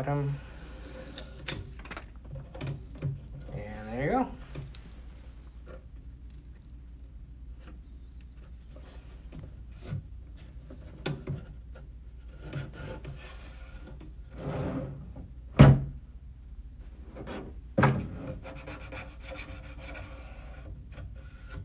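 Tools click and knock against a drawer.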